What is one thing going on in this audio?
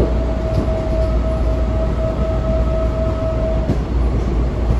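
A train's motor whines at a steady pitch, then fades.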